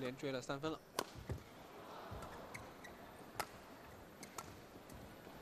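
A racket strikes a shuttlecock with sharp pops, back and forth.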